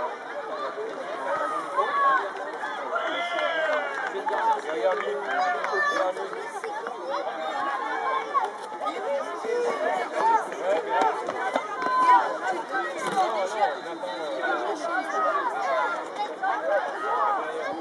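Many children chatter and call out excitedly outdoors.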